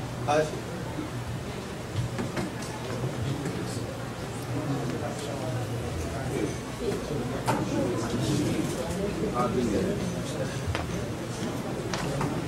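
A middle-aged woman speaks calmly into a microphone in a room with some echo.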